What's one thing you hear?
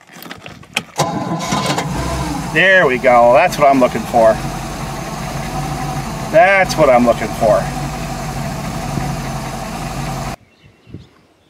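A boat engine idles with a steady low rumble.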